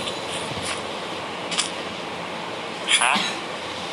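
A game villager makes a short nasal grunt.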